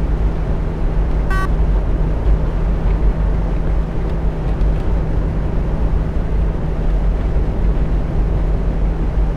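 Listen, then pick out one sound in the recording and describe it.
A heavy engine hums steadily with a low drone.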